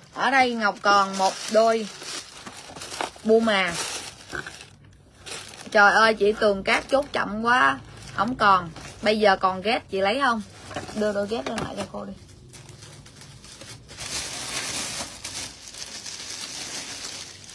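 Cardboard rustles as a box is handled.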